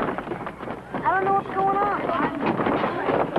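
A child shouts loudly.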